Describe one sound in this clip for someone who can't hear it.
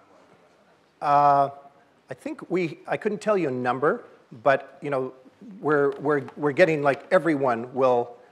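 A middle-aged man speaks calmly through a microphone in a large hall.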